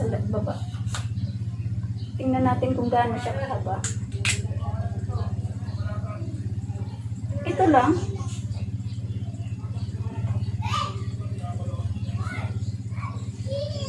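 Plastic parts click as a selfie stick is handled and adjusted.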